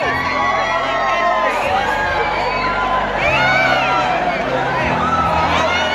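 A live band plays loudly through loudspeakers in a large echoing hall.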